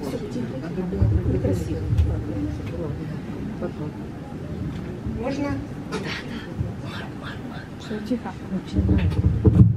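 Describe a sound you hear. An older woman speaks calmly through a microphone and loudspeaker.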